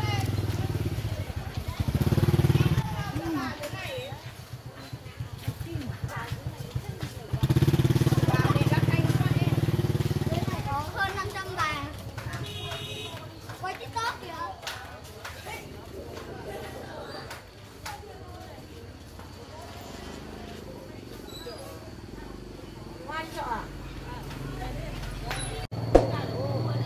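Men and women chatter outdoors nearby.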